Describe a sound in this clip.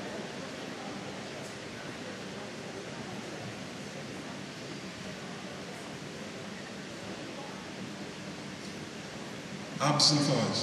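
An audience murmurs and chatters in a large echoing hall.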